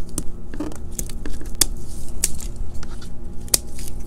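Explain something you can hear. Gloved hands rustle and press loose soil in a pot.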